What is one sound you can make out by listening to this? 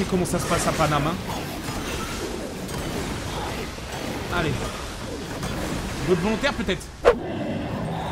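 Magical blasts crackle and whoosh in rapid bursts.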